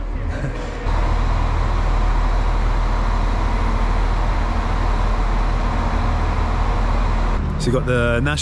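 A train engine hums steadily under a large station roof.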